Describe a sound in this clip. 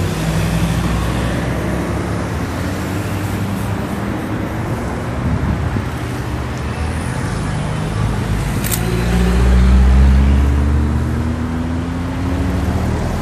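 Cars drive past on a road nearby, with a low engine rumble.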